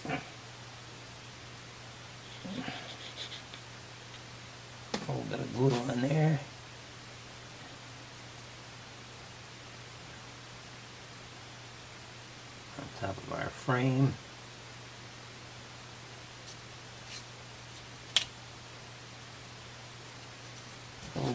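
Small wooden pieces knock and click softly against each other.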